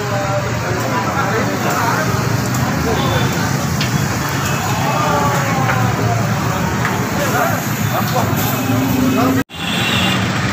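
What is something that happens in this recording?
Blowtorches hiss steadily.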